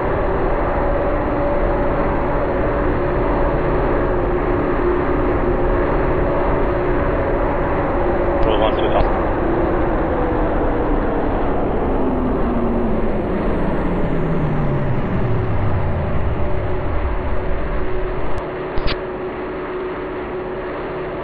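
A jet airliner's engines roar loudly and steadily.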